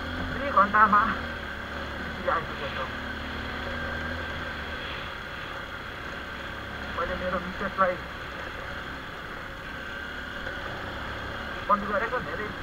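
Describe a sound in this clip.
A motor hums low and steadily.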